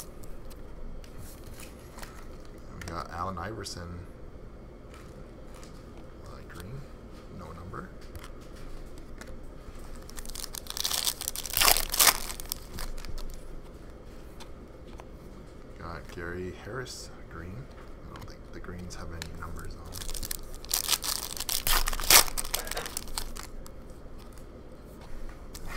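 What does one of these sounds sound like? Trading cards slide against each other as they are shuffled.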